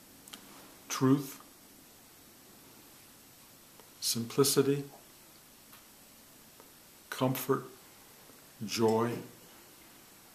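An older man speaks calmly in short bursts, close by.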